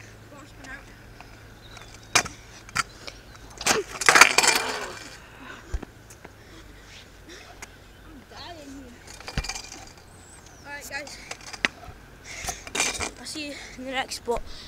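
Scooter wheels roll and rattle on rough asphalt outdoors.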